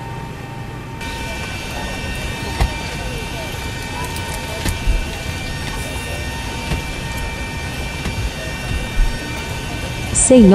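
A jet engine whines and roars steadily nearby.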